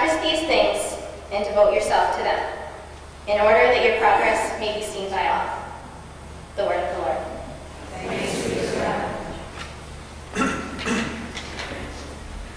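A young woman reads out calmly through a microphone in a large echoing hall.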